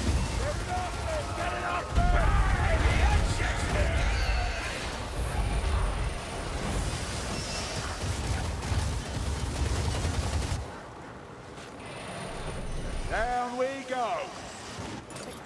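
A fiery spell whooshes and crackles.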